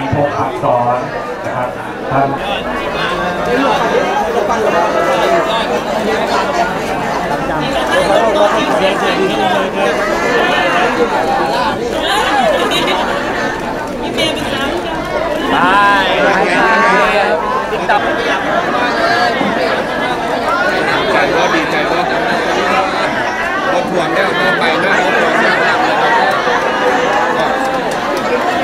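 A crowd of people chatters and calls out all around, outdoors.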